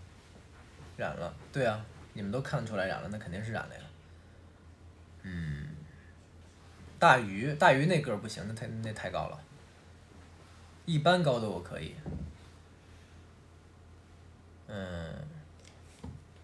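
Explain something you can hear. A young man talks calmly and close up, in short bursts with pauses.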